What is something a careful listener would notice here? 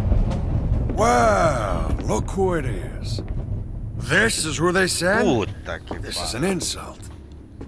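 A man speaks tensely in a large echoing hall.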